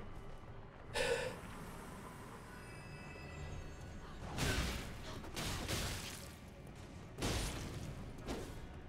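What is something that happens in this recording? A sword slashes and strikes an armoured warrior with heavy metallic hits.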